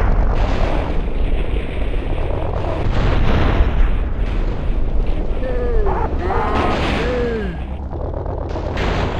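Explosions boom and roar with deep rumbling.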